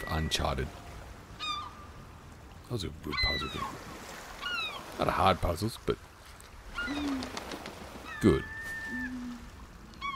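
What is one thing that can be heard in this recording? A seagull squawks nearby.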